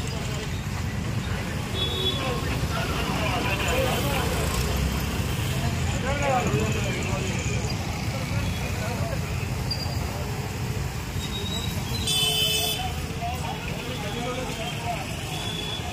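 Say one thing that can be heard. Motorbike engines hum and pass by.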